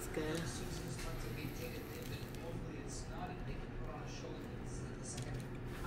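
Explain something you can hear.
Crusty bread crunches as a woman bites into a sandwich.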